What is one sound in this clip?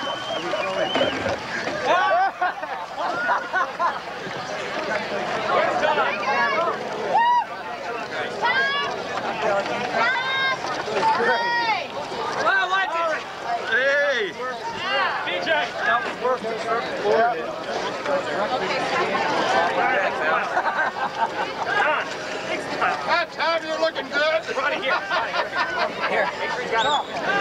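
Men talk and laugh nearby.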